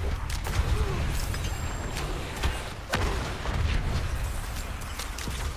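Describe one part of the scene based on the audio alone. Deep rumbling explosions boom in a game.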